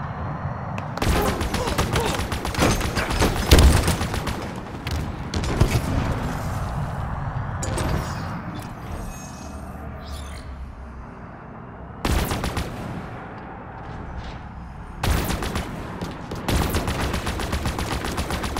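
Plasma guns fire in rapid bursts.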